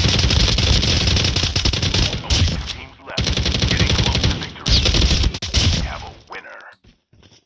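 Gunfire and game sounds play loudly through small speakers.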